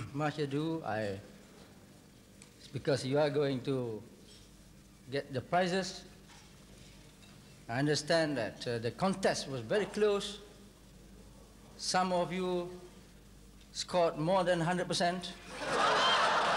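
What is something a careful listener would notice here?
A middle-aged man addresses an audience through a microphone and loudspeakers.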